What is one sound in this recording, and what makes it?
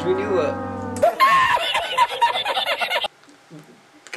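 An older man laughs loudly and hoarsely.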